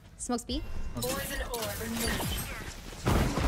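A young woman talks animatedly into a microphone.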